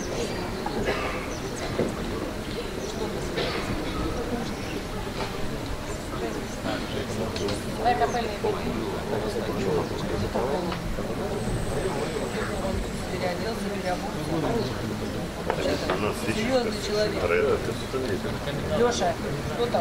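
An accordion plays a lively tune.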